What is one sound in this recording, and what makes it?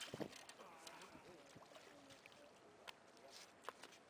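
A fish splashes as it is hauled out of the water.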